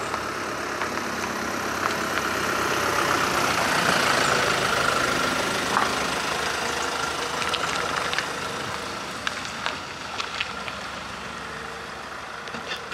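Tyres crunch on wet gravel.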